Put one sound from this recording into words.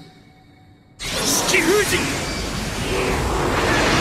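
A burst of smoke erupts with a loud rushing roar.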